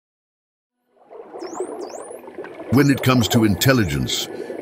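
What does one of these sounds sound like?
Dolphins whistle and chirp underwater.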